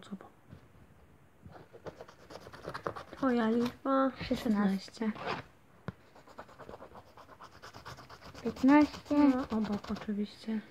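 A coin scratches rapidly across a scratch card.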